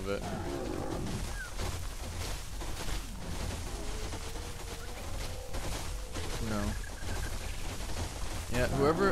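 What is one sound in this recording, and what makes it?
A large creature's footsteps thud softly on the ground.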